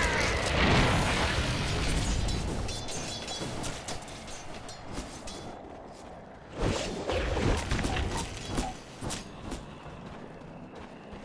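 Game sound effects crackle and burst loudly.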